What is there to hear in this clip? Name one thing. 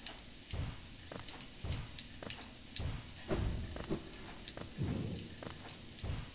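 Soft whooshing thumps sound as a game character leaps and flutters upward again and again.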